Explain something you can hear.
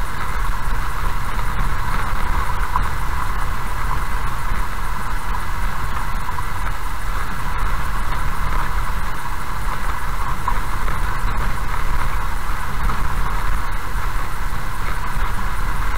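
A car's tyres rumble steadily on a rough gravel road.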